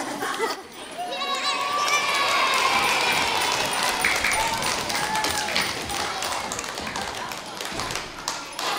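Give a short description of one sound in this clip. A crowd of children sings loudly together in a large echoing hall.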